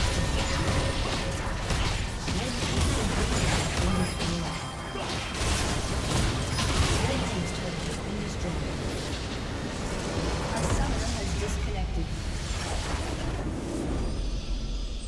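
Game battle effects crash and explode in quick bursts.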